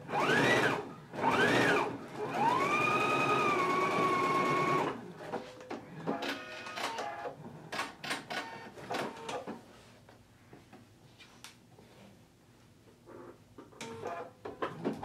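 A sewing machine stitches with a fast rattle.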